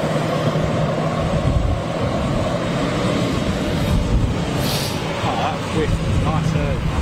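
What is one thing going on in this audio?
An aircraft engine hums steadily nearby.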